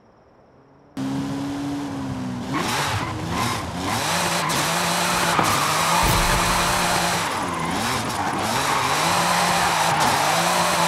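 A sports car engine revs hard and shifts gears.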